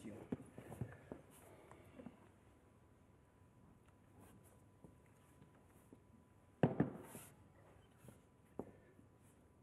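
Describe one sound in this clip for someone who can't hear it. Wooden boxes knock and clatter.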